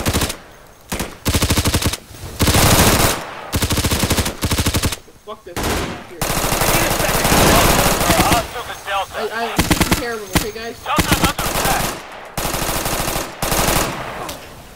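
Rifles fire in rapid bursts, close by and loud.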